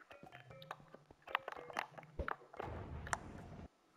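A stone block clicks into place.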